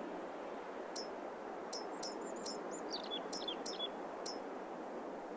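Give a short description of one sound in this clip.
Short soft clicks sound as menu options are selected.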